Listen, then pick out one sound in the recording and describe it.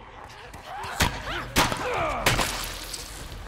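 Gunshots ring out sharply, with a ringing echo after each.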